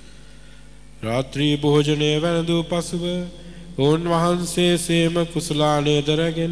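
An elderly man chants into a microphone, heard through loudspeakers.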